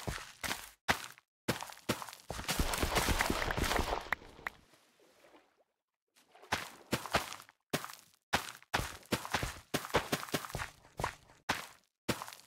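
Crops are cut down in quick, crunchy bursts.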